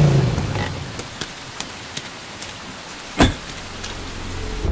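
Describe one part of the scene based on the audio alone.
Footsteps splash on wet pavement.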